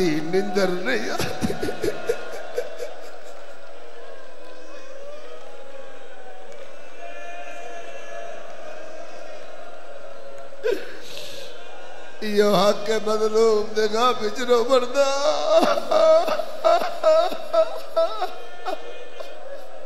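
A crowd of men chants together loudly.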